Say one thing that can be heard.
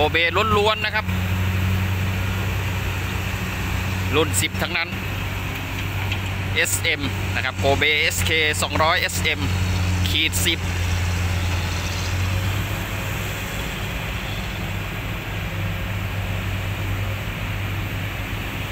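A diesel crawler excavator engine drones.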